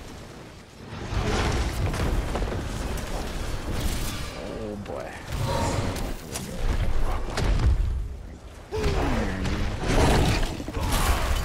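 Game combat sounds with heavy rumbling blows and effects play.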